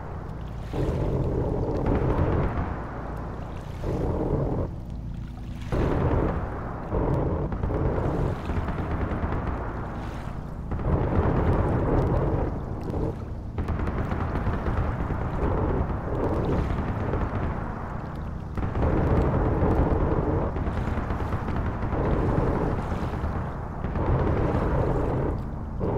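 Heavy guns fire in long, rapid bursts.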